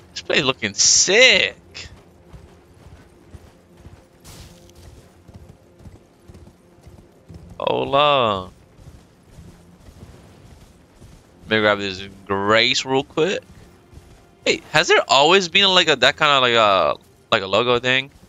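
A horse's hooves thud steadily on stone and earth.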